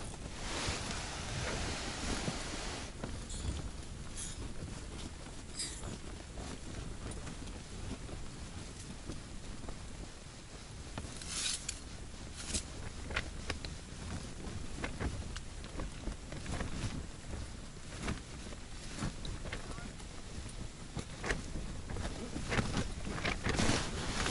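A small fishing reel clicks and ticks softly as its line is wound.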